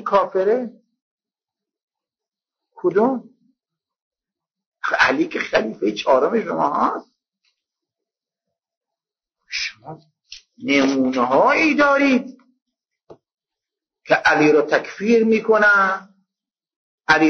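An elderly man speaks slowly and solemnly into a microphone, with long pauses.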